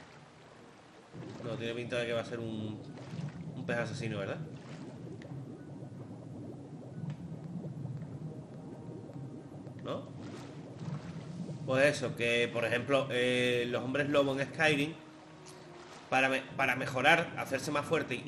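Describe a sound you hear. Water sloshes and bubbles, muffled underwater.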